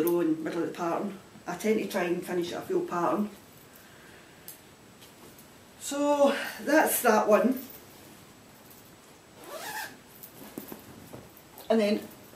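Fabric rustles as a woman handles knitting.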